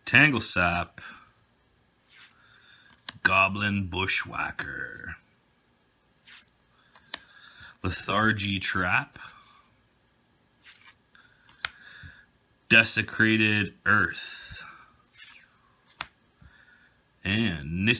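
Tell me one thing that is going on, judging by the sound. Playing cards slide and flick against each other now and then.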